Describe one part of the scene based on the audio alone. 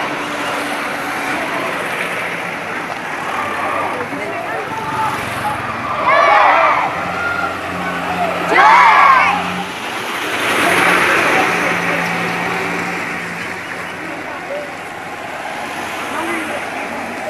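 Vehicles drive past one after another on a road outdoors.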